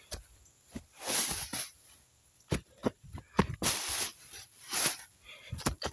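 Dry leaves and grass rustle underfoot.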